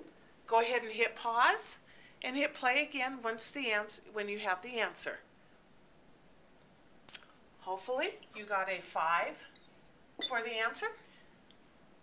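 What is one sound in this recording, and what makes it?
A middle-aged woman speaks calmly and clearly close by, explaining.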